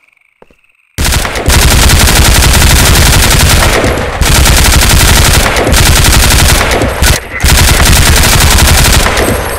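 A submachine gun fires rapid, loud bursts.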